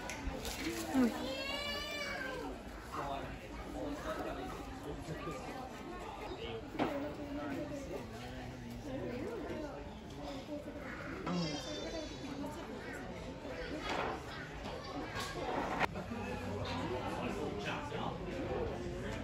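People chatter in the background of a large open space.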